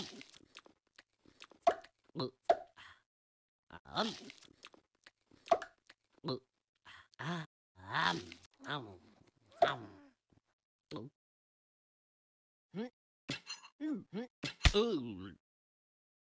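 A cartoon dog munches food with loud chomping sounds.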